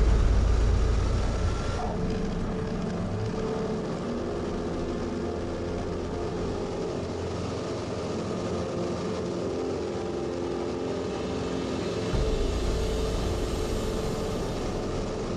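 A small propeller plane's engine drones loudly and steadily close by.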